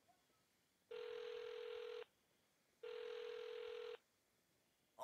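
A phone ringtone sounds in two long, steady beeps.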